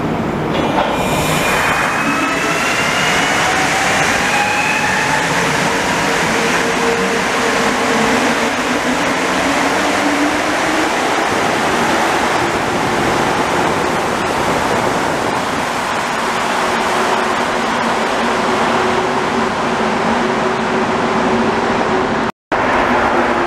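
An MR-73 rubber-tyred metro train pulls out of an echoing underground station, its motors whining up in pitch.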